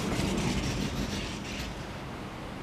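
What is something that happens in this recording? A sliding window rumbles along its track.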